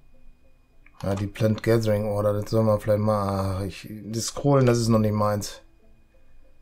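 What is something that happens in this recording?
A middle-aged man speaks calmly close to a microphone.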